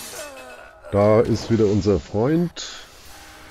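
A man speaks in a low voice close by.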